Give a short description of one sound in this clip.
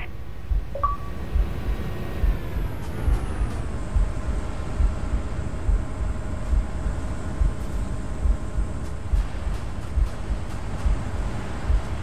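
A dropship's engines hum steadily overhead, dropping in pitch as the craft slows.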